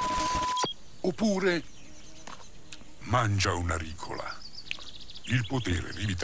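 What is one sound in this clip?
A man speaks with animation in a deep, cartoonish voice.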